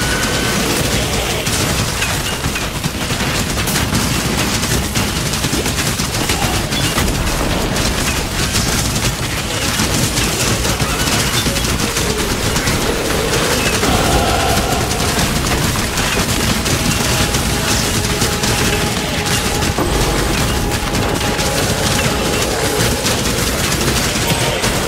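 Magic spells crackle and burst in rapid, overlapping blasts.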